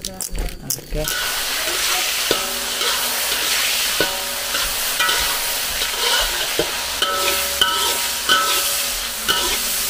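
Food sizzles loudly as it fries in hot oil.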